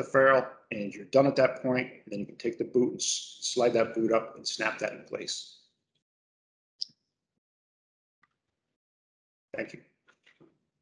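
A middle-aged man talks calmly and close to the microphone.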